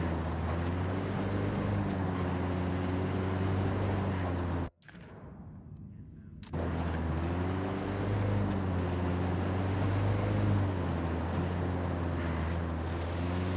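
A car engine hums steadily as the car drives along a road.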